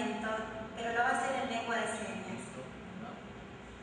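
A woman speaks into a microphone through loudspeakers.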